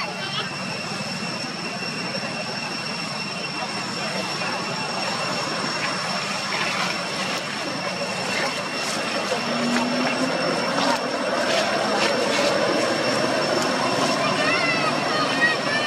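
Dry leaves crunch and rustle under a monkey's feet.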